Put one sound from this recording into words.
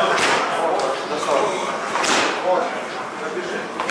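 Gloved fists thud against pads.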